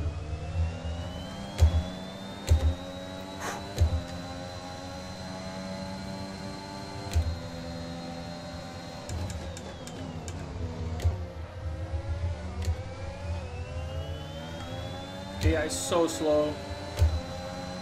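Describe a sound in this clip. A racing car engine roars at high revs, dropping in pitch as the car slows and then rising again as it speeds up.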